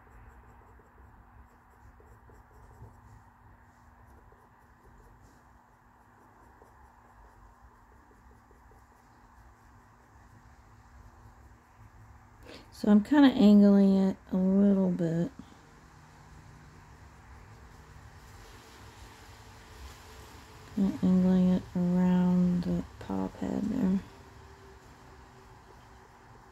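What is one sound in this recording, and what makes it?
A coloured pencil scratches softly on a hard surface.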